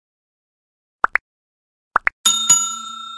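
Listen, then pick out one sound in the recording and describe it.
Two quick clicks sound, then two more.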